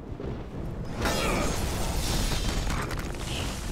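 A body slams heavily onto a stone floor.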